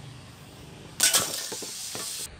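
A metal can is struck with a sharp clang.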